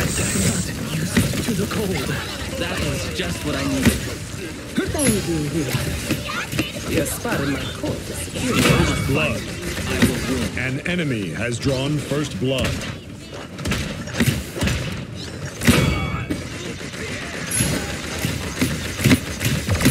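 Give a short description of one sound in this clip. Magic blasts crackle and whoosh.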